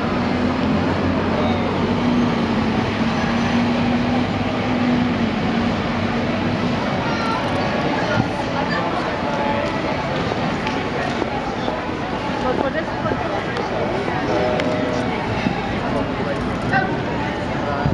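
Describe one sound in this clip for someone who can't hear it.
A man speaks loudly to a crowd outdoors.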